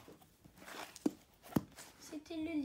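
A hardcover book knocks down onto a wooden table.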